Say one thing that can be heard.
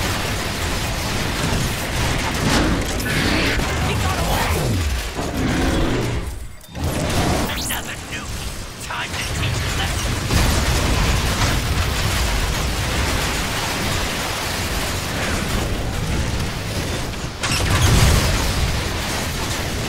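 Explosions boom and rumble.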